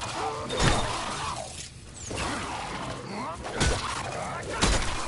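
Heavy blows thud and crack.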